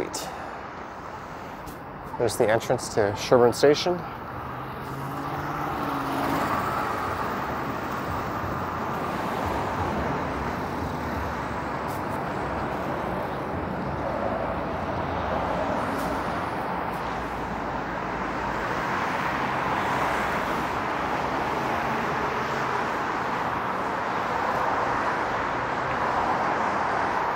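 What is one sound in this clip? Traffic rushes past steadily nearby, swelling and fading as cars go by.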